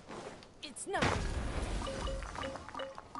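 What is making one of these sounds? A loud magical whoosh bursts out.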